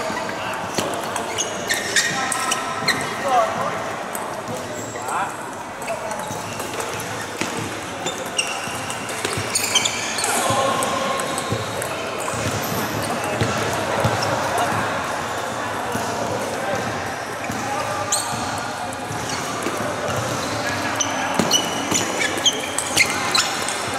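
A table tennis ball clicks sharply back and forth off paddles and the table in an echoing hall.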